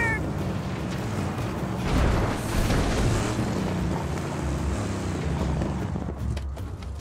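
Tyres skid and crunch over dirt.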